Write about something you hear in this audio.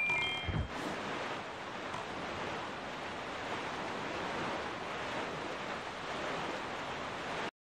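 A small boat rushes across the sea with waves splashing steadily.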